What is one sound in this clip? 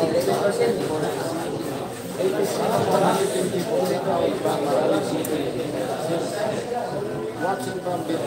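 A crowd of young men chatter nearby.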